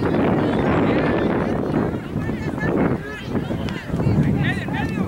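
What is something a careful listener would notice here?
Adult spectators and young players shout and call out across an open field.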